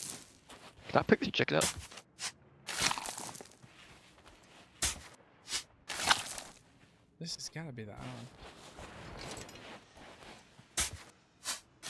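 A shovel digs into sand with scraping thuds.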